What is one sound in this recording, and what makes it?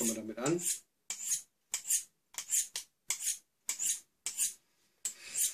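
A knife scrapes repeatedly along a sharpening steel.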